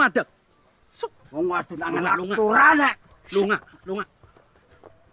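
A man shouts harshly nearby.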